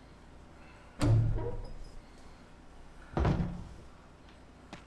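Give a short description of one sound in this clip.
A heavy wooden door bangs open.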